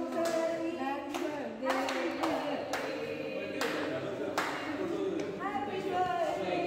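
A group of people clap their hands.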